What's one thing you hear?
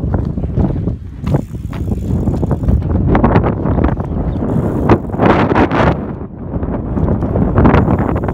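A road bike's tyres roll on asphalt.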